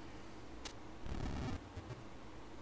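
Short electronic video game sound effects play.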